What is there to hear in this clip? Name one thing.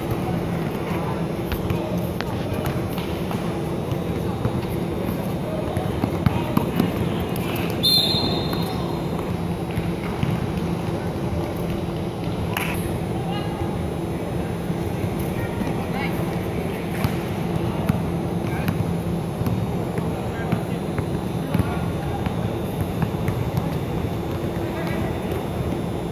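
Spectators murmur and chatter throughout a large echoing hall.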